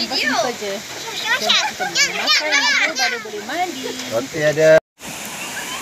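A young girl talks and giggles close by.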